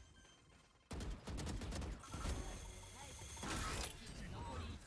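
Gunshots rattle in quick bursts.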